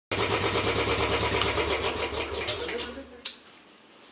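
A motorcycle engine runs with a rapid throb, then cuts out.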